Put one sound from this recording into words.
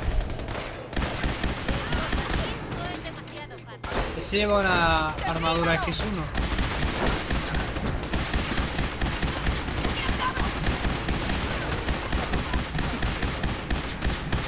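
Laser gunfire zaps in rapid bursts.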